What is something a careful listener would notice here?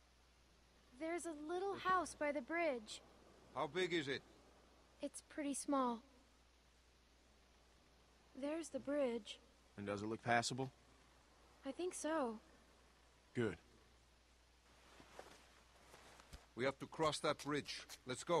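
A young girl speaks quietly and calmly.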